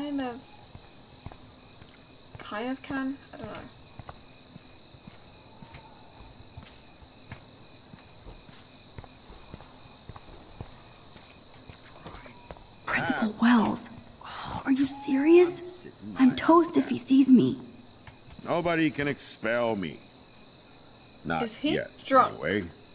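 A young woman talks into a headset microphone with animation.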